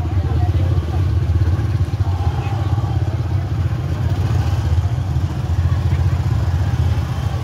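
A crowd of people chatters in a busy outdoor market.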